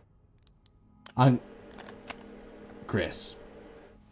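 A briefcase latch snaps open.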